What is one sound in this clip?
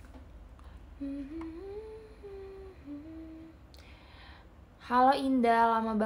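A young woman sings close by, her voice rising and then growing louder.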